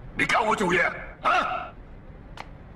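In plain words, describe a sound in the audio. A man speaks sternly and scoffs.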